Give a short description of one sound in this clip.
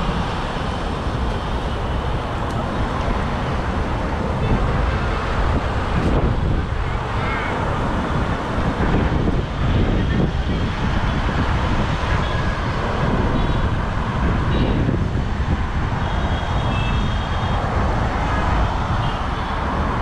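Waves wash against rocks along a sea wall.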